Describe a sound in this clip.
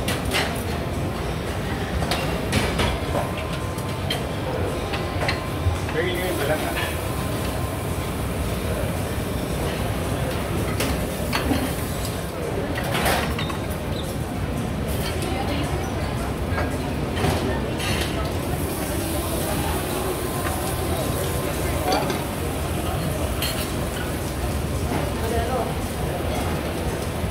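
Dishes and utensils clink now and then.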